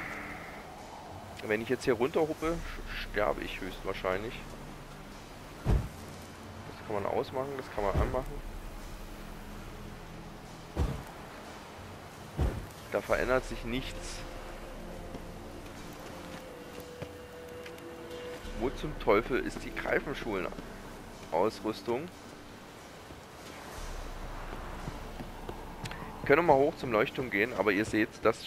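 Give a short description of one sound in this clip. Footsteps thud on stone and wooden boards.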